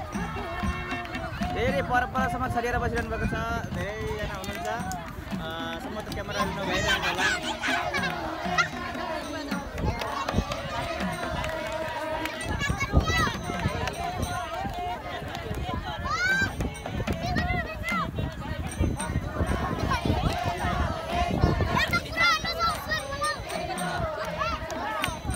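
A crowd of men and women sings together outdoors.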